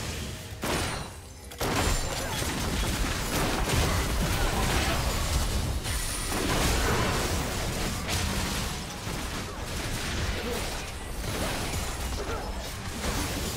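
Attacks hit with sharp impacts.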